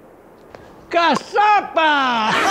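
An elderly man shouts excitedly.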